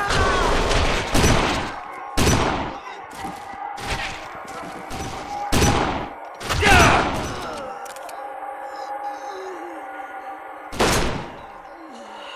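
Gunshots crack in loud, quick bursts.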